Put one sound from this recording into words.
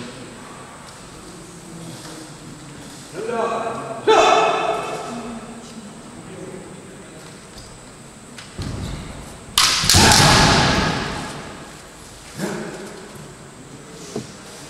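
Sounds echo in a large hall.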